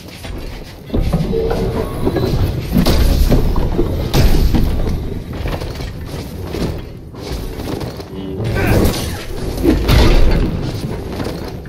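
A large metal ball rumbles as it rolls.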